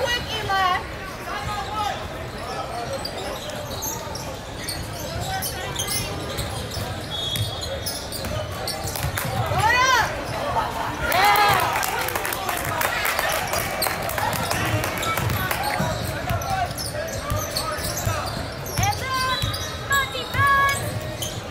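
A basketball bounces on the floor with dull thumps.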